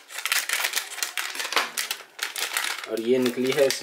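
A plastic wrapper crinkles and rustles in a hand.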